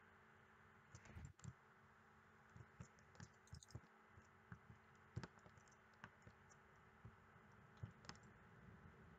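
Soft footsteps tap on a stone floor.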